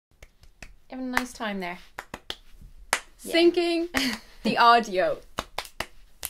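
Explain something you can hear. A second young woman laughs close to a microphone.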